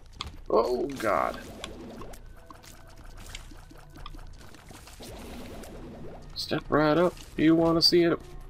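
Video game tear shots pop and splat repeatedly.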